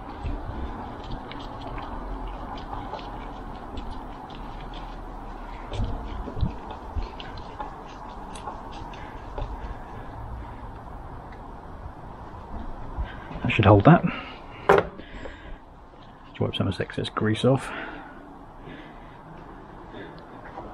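Small metal tool parts click and clink as they are handled.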